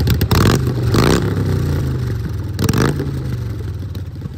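A motorcycle engine revs sharply a couple of times.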